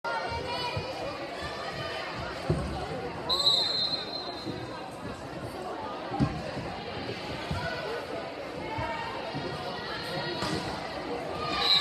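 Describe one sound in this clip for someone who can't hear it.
A crowd of spectators chatters in an echoing gym.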